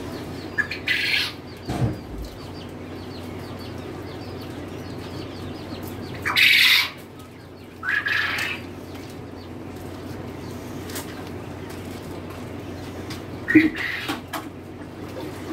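Hens squawk and cluck nearby.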